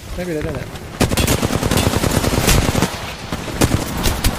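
Rapid gunshots fire.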